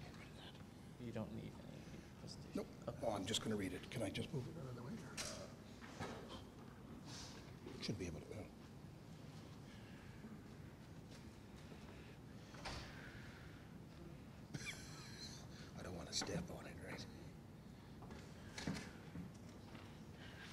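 An elderly man speaks quietly and haltingly into a microphone.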